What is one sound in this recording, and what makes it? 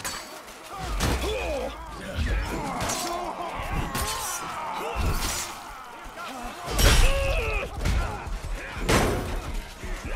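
Heavy blows thud against armour.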